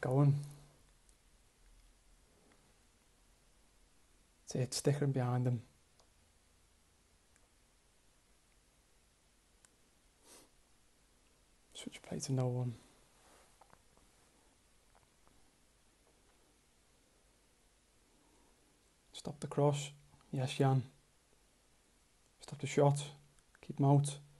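A young man talks calmly into a close microphone in short bursts.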